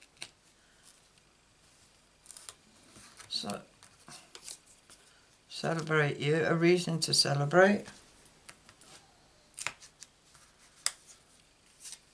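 Stiff paper cards rustle and tap softly under a hand.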